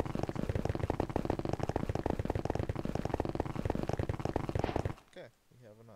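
Blows chip rapidly at stone in a video game.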